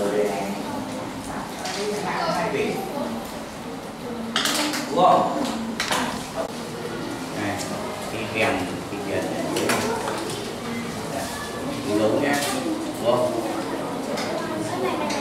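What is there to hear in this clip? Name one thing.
Children chatter softly all around in a busy room.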